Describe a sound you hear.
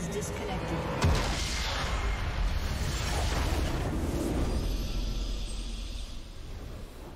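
A deep magical explosion booms and rumbles, then slowly fades.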